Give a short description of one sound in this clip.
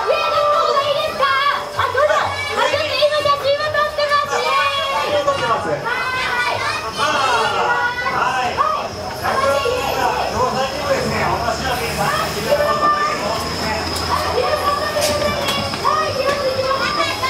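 Cheerful carousel music plays loudly and steadily.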